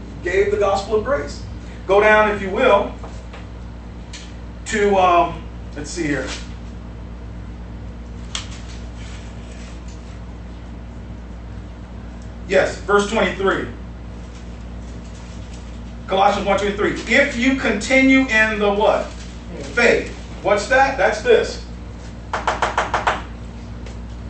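A man speaks calmly, pausing often.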